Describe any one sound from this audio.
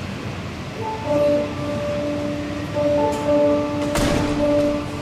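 A piano plays notes in a large echoing hall.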